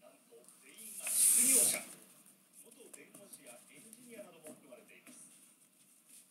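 A stack of trading cards rustles and slides between hands.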